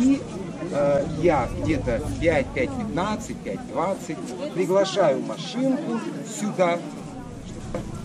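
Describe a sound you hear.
An elderly man speaks with animation close by.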